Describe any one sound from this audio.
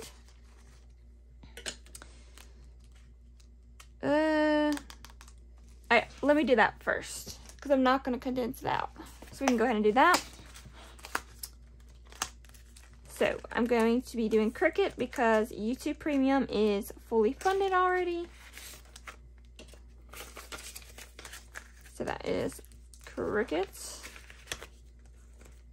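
Plastic binder pages rustle and flip.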